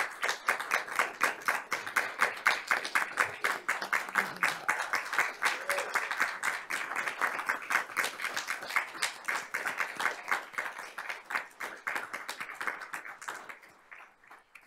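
A group of people applaud in a room.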